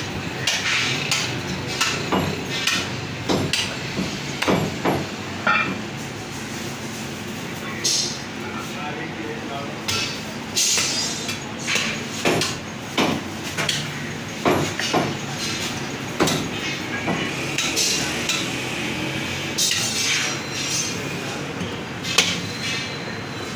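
A cleaver chops through meat and bone on a wooden block with sharp, repeated thuds.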